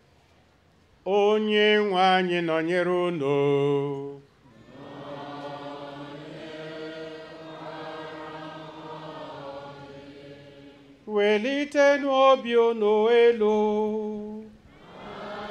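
An elderly man chants through a microphone and loudspeaker.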